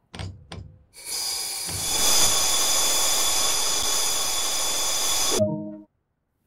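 An electric train's brakes hiss steadily as the train comes to a stop.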